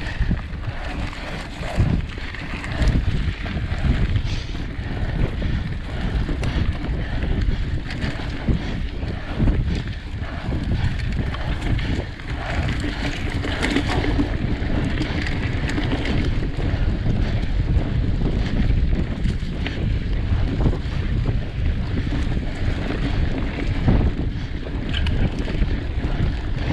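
Wind buffets a microphone, a steady roar.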